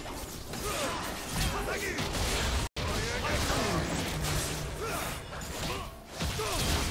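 Spell blasts and weapon hits of a video game battle crackle and clash.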